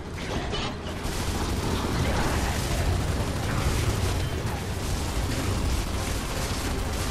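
Guns fire in rapid, rattling bursts.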